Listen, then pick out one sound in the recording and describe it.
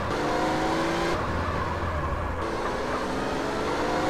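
Tyres screech as a car slides around a corner.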